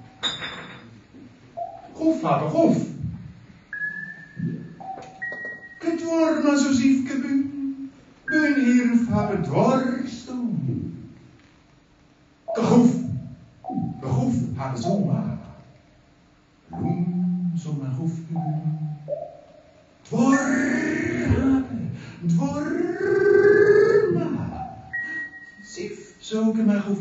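A middle-aged man speaks into a microphone.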